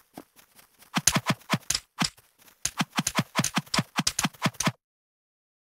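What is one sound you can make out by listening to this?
Sword strikes land in a rapid series of sharp hits.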